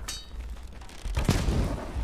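A blade swings and strikes.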